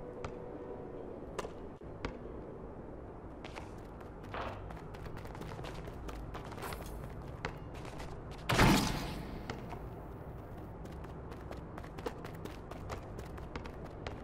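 A basketball bounces repeatedly on an outdoor court.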